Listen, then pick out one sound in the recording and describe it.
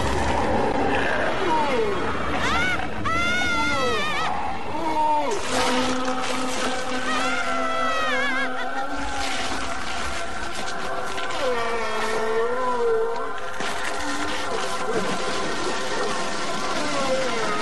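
A monster roars and snarls loudly.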